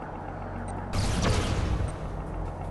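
A laser beam fires with a sharp electric zap.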